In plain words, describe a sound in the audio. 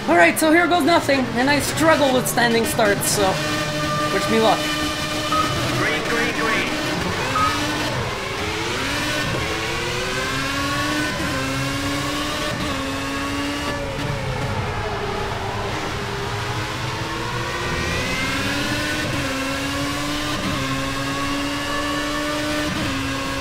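A racing car engine climbs in pitch and drops with each gear change.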